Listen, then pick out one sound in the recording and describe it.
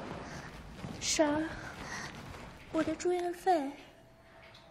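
A young woman speaks tearfully and strained.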